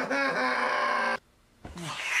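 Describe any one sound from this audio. A young man screams loudly up close.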